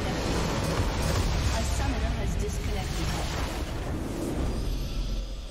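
A huge explosion booms and rumbles.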